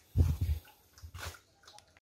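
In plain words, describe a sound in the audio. A dog laps water from a tub.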